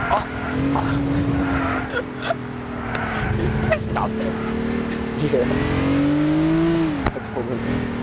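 A racing car engine drones steadily and revs up and down.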